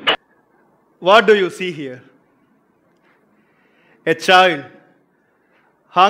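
A man speaks clearly to an audience in an echoing room.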